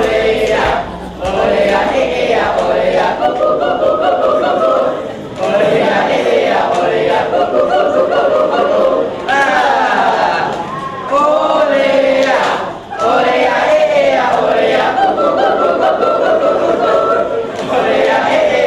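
A young man sings loudly.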